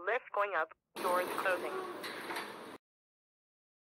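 Elevator doors slide shut.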